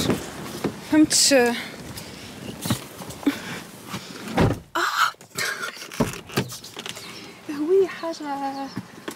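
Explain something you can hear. Wind rushes in through an open car window.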